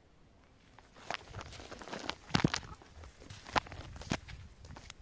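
Plant stalks rustle and brush against each other close by.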